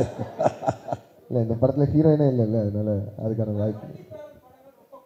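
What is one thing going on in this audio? A young man speaks animatedly into a microphone.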